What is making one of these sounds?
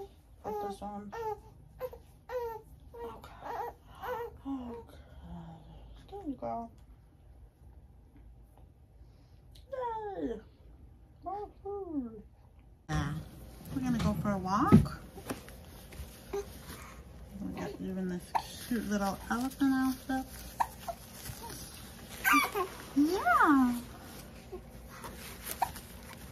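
A young woman talks softly and playfully up close.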